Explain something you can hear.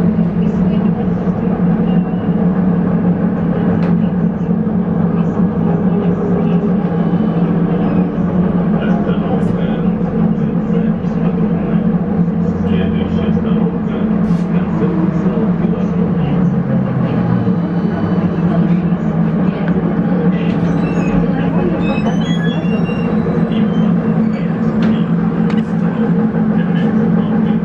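A vehicle's engine hums and rattles steadily from inside while driving.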